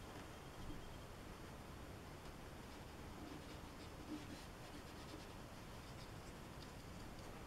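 A brush taps and strokes softly on paper.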